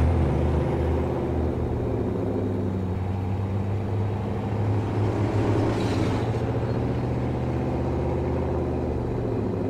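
A truck engine drones steadily at low pitch.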